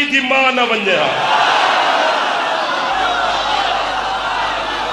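A large crowd chants and shouts together.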